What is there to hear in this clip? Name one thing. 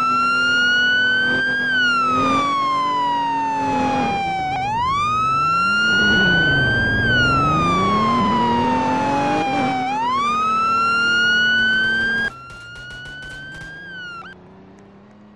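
A siren wails, rising and falling loudly.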